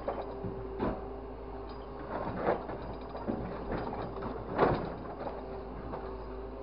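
Scrap metal clanks and rattles in a grapple.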